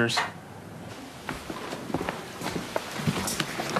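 Footsteps tap on a wooden floor.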